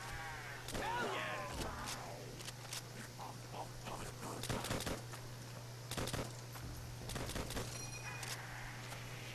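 Rifle shots crack repeatedly.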